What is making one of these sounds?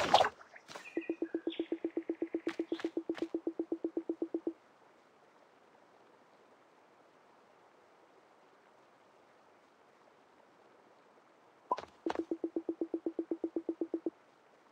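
Rapid electronic blips patter in quick, even succession.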